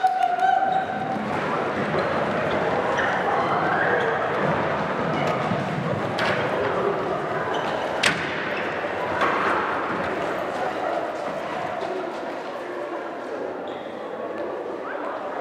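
Many footsteps run across a wooden floor in a large echoing hall.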